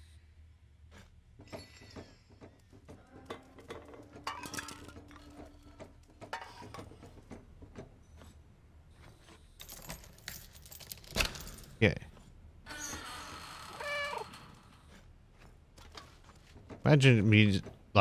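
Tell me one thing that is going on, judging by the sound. Metal footsteps clank and scrape on a hard floor.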